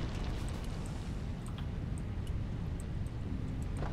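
Rocks rattle and rumble along a conveyor belt.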